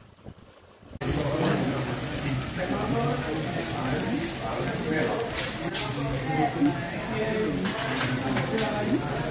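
Many people chatter in a busy echoing room.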